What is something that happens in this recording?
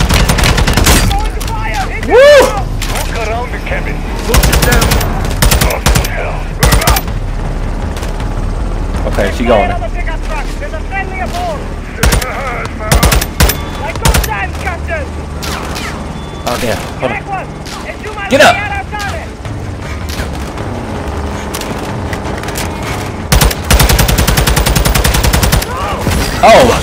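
Rapid gunfire bursts ring out in loud volleys.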